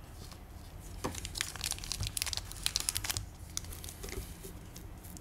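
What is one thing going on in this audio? A foil wrapper crinkles as hands handle it.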